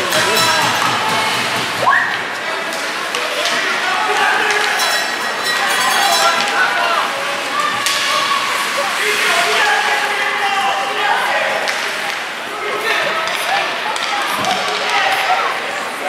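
Young players shout and call out across a large echoing rink.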